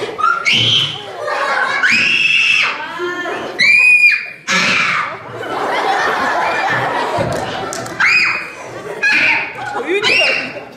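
A young child answers through a microphone in a high voice.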